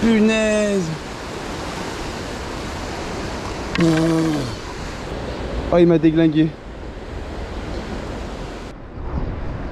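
A swollen river rushes and churns loudly nearby.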